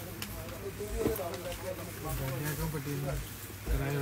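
Fabric rustles as cloth is unfolded and spread out.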